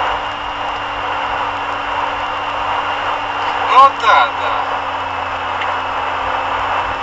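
A car drives fast with steady road and engine noise from inside.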